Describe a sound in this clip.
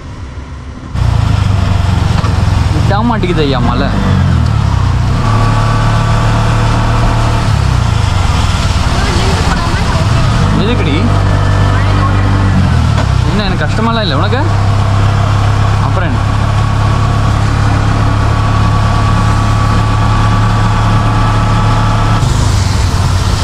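A small motor engine drones steadily.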